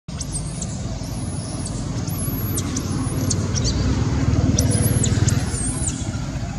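A baby monkey squeals in high, repeated cries.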